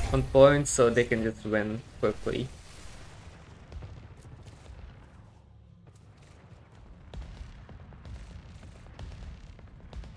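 Energy blasts zap and crackle in quick bursts.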